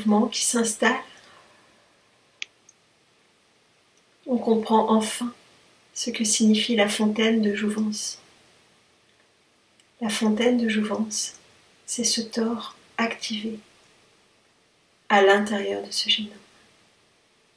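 A middle-aged woman speaks calmly and close to the microphone, in short phrases with pauses.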